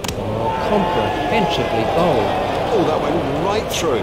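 A bat strikes a cricket ball with a sharp knock.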